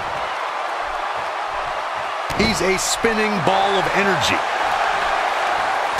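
A large crowd cheers and murmurs steadily.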